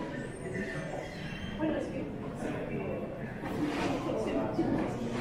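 People chatter in the background of an echoing station.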